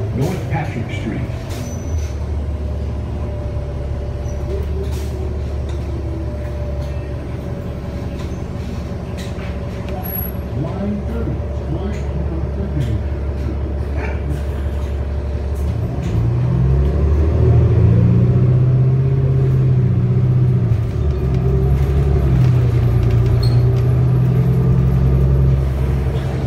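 A bus interior rattles and clatters over the road.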